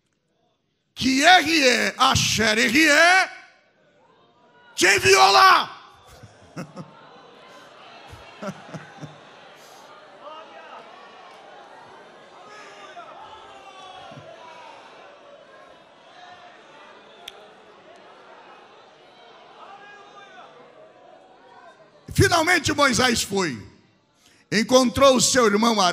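A middle-aged man preaches loudly and with animation through a microphone in a large echoing hall.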